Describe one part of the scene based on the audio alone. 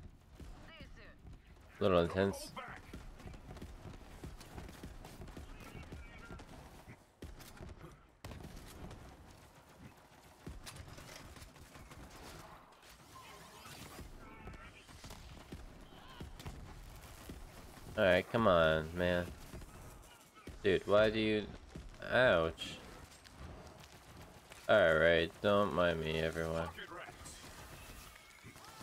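Guns fire in rapid bursts with sharp cracks.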